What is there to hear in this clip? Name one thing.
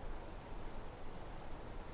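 A waterfall roars close by.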